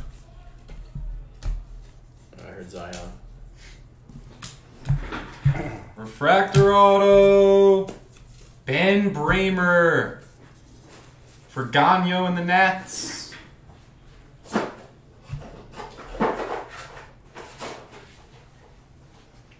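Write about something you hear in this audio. Trading cards rustle and slide as hands shuffle through them.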